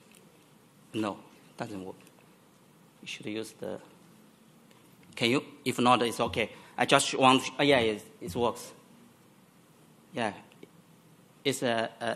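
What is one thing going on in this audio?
A man speaks calmly through a microphone in a large echoing hall, in short bursts with pauses.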